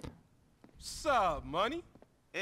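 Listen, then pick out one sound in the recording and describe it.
A man calls out a casual greeting.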